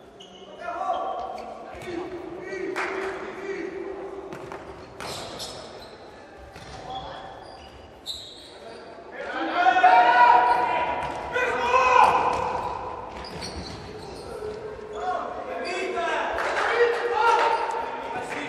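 A ball thuds as players kick it in a large echoing hall.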